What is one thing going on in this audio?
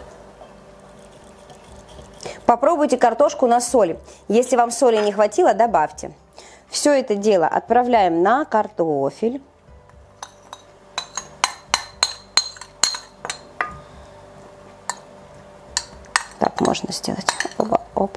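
A metal spoon clinks and scrapes against a ceramic bowl.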